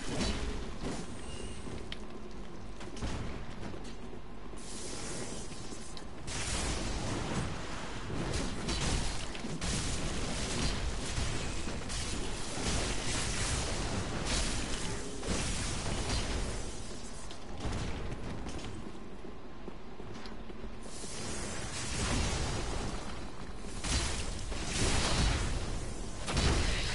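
Swords clash and clang in combat.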